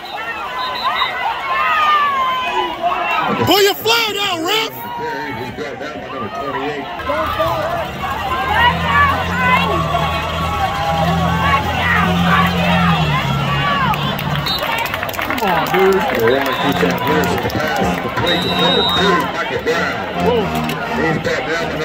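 A large crowd cheers and chatters loudly outdoors.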